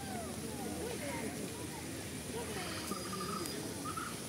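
Crows caw nearby.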